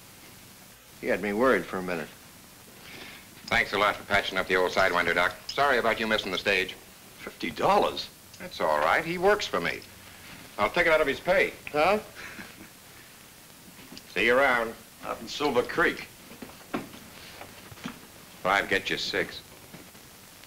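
Men talk calmly.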